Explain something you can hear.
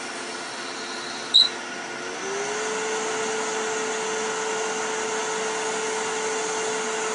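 A lathe motor hums steadily as it spins.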